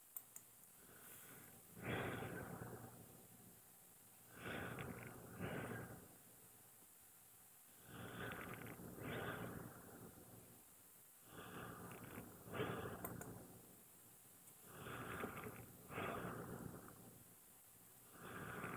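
A man speaks calmly through a microphone, in phrases with pauses.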